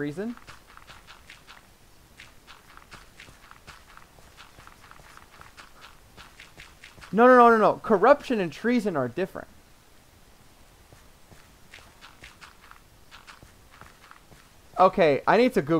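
Footsteps crunch quickly on grass and dirt.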